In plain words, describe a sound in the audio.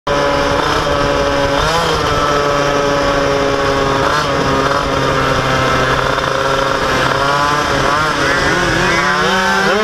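A second motorcycle engine revs just ahead.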